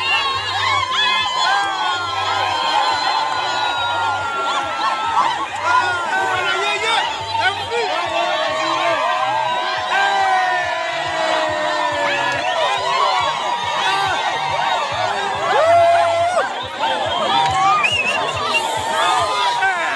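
A crowd of women and men cheers and ululates loudly close by.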